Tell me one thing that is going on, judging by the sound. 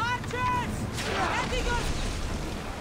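A volley of arrows whooshes through the air.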